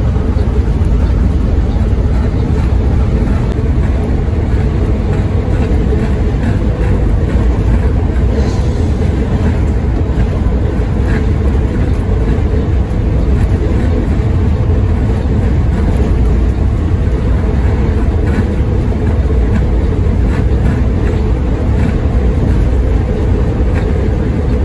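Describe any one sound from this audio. A heavy vehicle's engine drones steadily.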